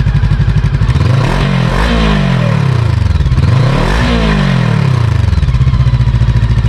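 A motorcycle engine revs up sharply twice and falls back.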